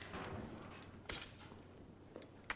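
A metal locker door creaks open.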